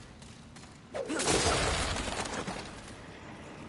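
A heavy blast bursts with a loud rushing roar.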